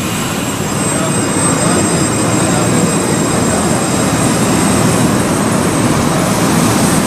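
A tram rolls past close by with a low rumble.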